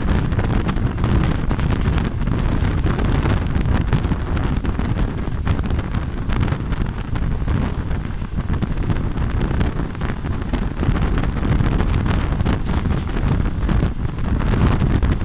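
Strong wind rushes past loudly outdoors.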